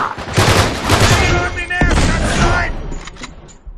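Gunfire bursts loudly and echoes.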